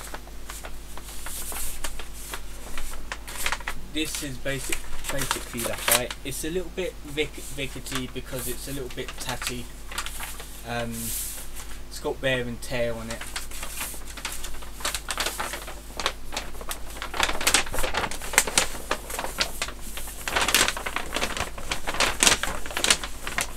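Plastic packaging rustles and crinkles as it is handled.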